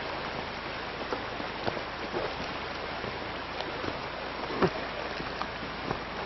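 Water flows and splashes over stones in a shallow river.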